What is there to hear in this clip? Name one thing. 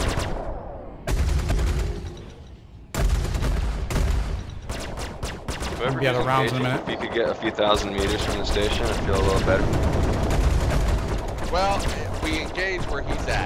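A spaceship engine rumbles low and steady.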